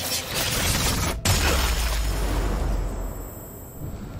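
A body bursts with a loud wet splatter.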